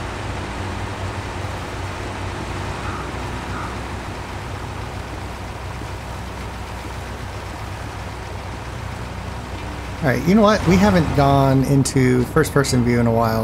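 A heavy truck engine rumbles steadily while driving slowly.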